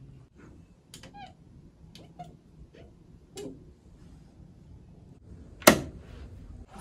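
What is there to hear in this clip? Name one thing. Fingernails tap against a smooth hard surface.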